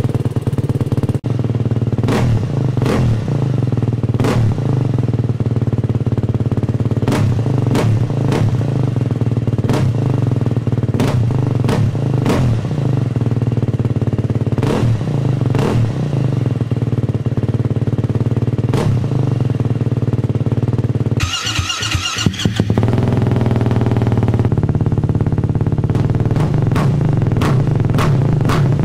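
A motorcycle engine idles with a loud, steady rumble from the exhaust.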